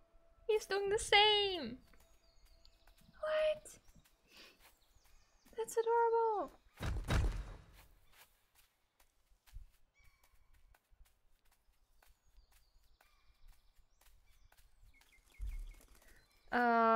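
A small creature lets out short, bright chirping calls that sweep downward.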